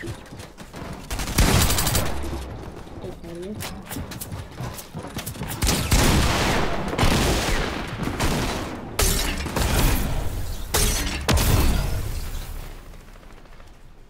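Wooden and metal building pieces thud and clatter into place in quick bursts.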